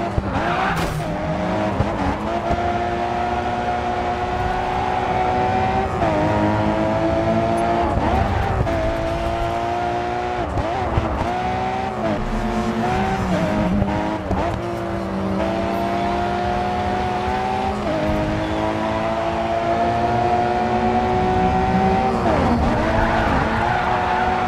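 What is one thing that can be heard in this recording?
A car engine revs high and shifts through gears as it races.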